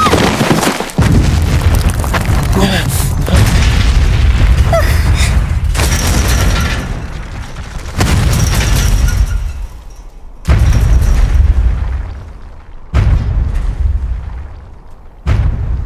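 Rubble collapses with deep rumbling booms.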